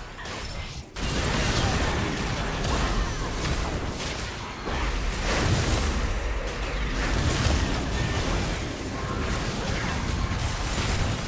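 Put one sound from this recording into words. Magic spells whoosh and crash in a fast video game battle.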